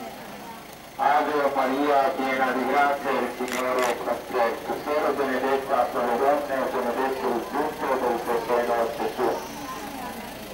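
A crowd of men and women sings together outdoors.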